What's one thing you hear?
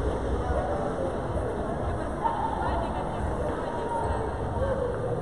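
People talk in a murmur in a large echoing hall.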